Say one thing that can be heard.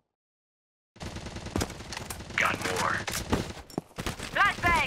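An assault rifle fires rapid gunshots.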